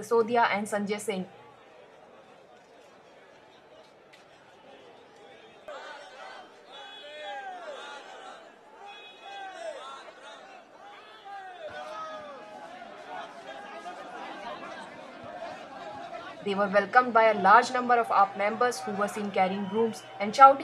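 A crowd of men chants and shouts slogans loudly outdoors.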